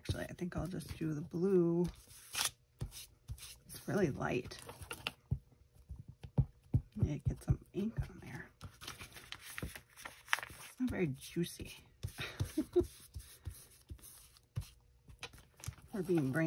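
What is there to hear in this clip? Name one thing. An ink pad taps repeatedly against paper.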